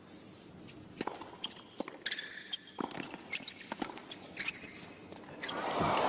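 A tennis ball is struck sharply by rackets in a rally.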